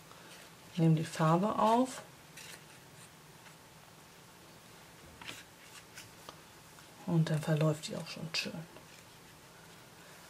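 A brush softly brushes over crinkly tissue paper.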